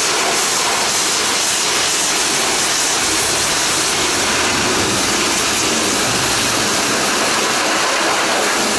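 A pressure washer sprays water in a loud, steady hiss.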